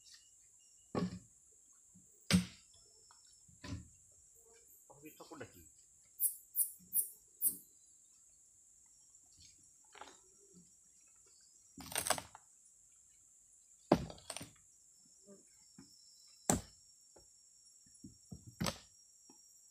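Wooden planks knock and thud against each other.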